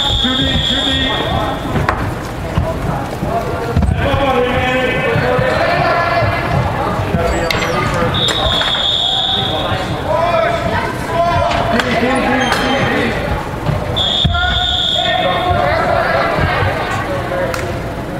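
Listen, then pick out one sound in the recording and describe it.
Spectators and players shout and call out in a large echoing indoor hall.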